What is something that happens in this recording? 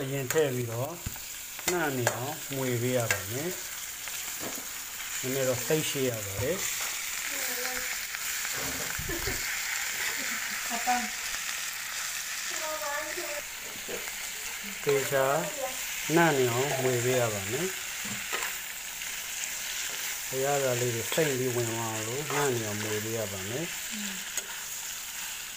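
A metal spatula scrapes and clatters against a frying pan.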